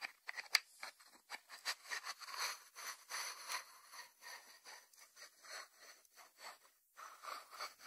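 Fingers rub and scratch over a ceramic lid.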